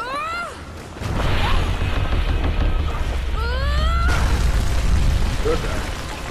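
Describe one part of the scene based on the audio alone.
Stone crumbles and collapses with a deep rumble.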